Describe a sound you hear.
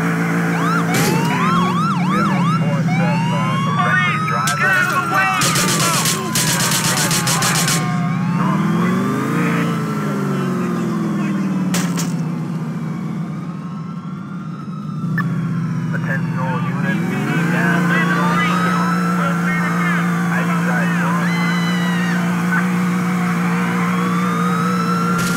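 Tyres screech as a car skids and spins.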